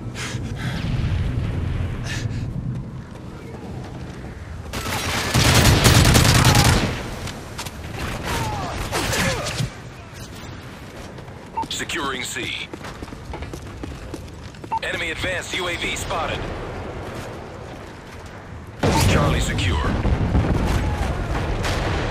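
Gunfire rattles in a video game battle.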